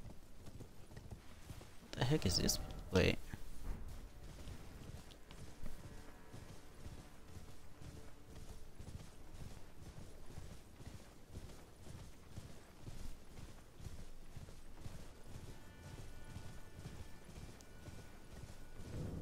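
Footsteps rustle through dry grass at a steady walking pace.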